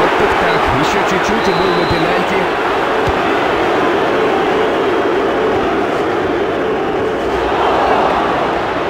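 A stadium crowd roars steadily throughout.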